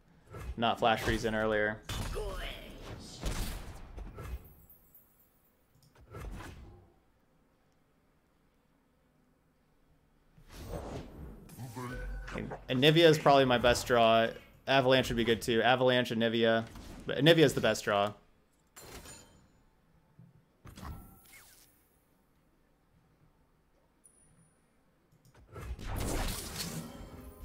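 Game card effects chime and whoosh.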